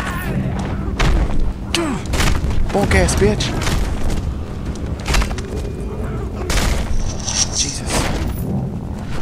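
Heavy punches land with loud thuds and smacks.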